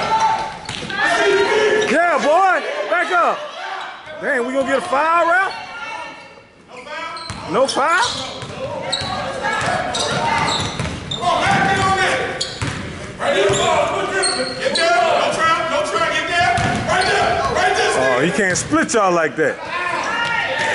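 Sneakers squeak sharply on a hardwood court in a large echoing gym.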